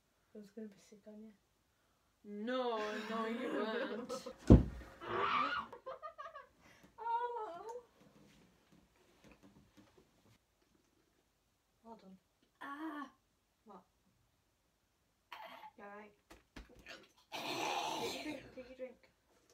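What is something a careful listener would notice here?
Two young women talk and laugh close by.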